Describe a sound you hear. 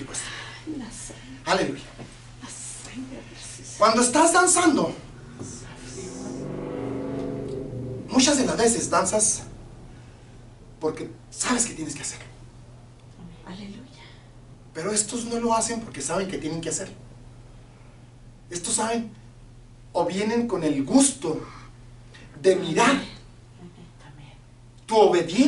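A middle-aged man speaks with animation, in bursts with pauses.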